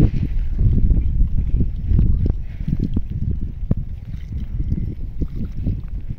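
Water pours from a jug onto hands and splashes on rock.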